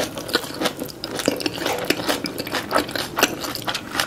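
A roll squishes as it dips into thick sauce.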